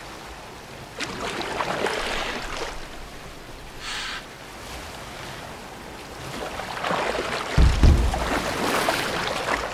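Oars splash and paddle through water.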